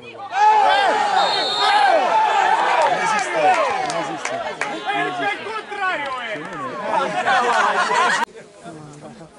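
A crowd of people cheers and shouts loudly nearby.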